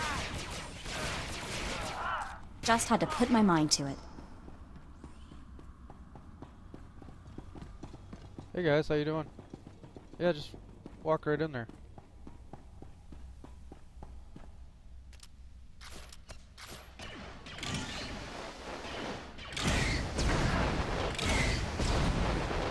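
Blaster pistols fire in rapid bursts.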